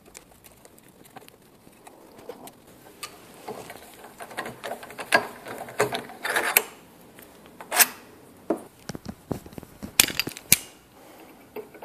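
Metal tools click and scrape against each other.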